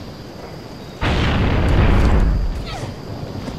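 A heavy gun fires a loud burst.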